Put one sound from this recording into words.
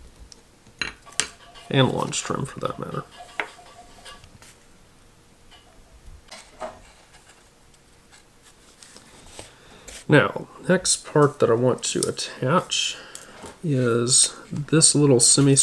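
Small parts tap and click on a table.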